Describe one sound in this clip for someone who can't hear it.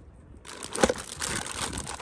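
A hand scoops wet bait from a plastic bucket.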